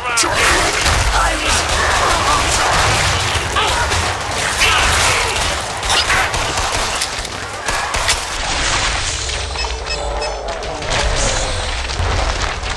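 Rapid gunfire blasts over and over.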